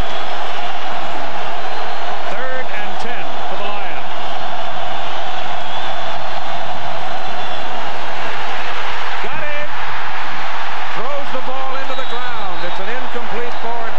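A large crowd roars steadily outdoors.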